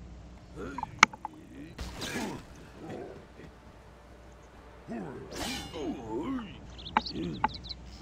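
Weapons strike with sharp clanks in a game fight.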